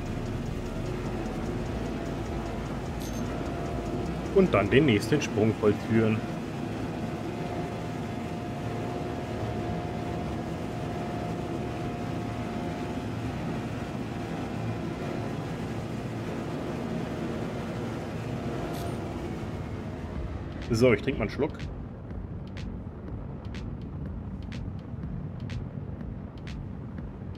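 A craft's engine hums steadily.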